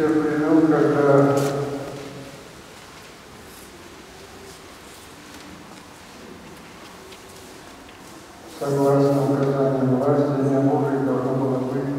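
A group of women sings a slow, sustained chant in an echoing hall.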